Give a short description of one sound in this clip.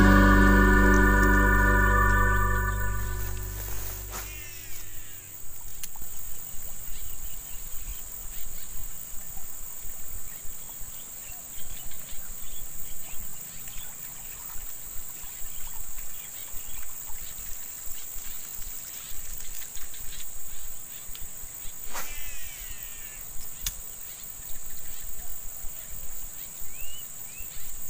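A fishing reel clicks as a line is cast and wound in.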